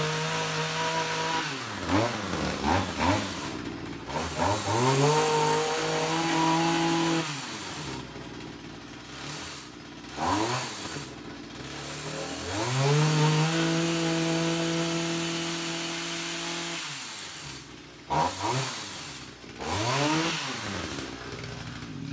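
A two-stroke trimmer engine revs in bursts, driving a hedge trimmer attachment.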